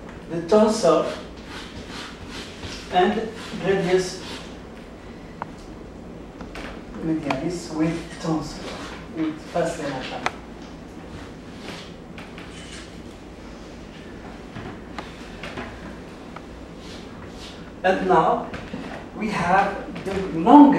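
A middle-aged man lectures calmly to a room, heard through a microphone.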